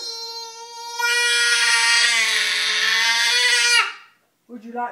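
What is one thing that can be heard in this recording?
A young child screams loudly and shrilly up close.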